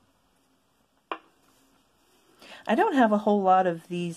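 A small plastic pot is set down on a wooden table.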